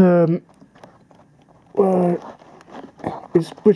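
A toy train engine clicks and rattles softly as hands lift it from a case.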